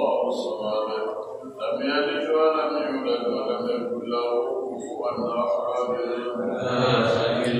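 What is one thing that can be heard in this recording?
A man speaks calmly close by, in a room with a slight echo.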